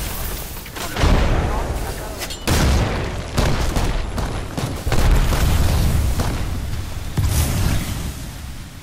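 Explosions boom and rumble heavily.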